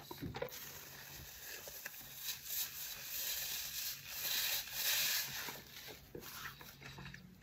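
A man blows his nose loudly into a tissue.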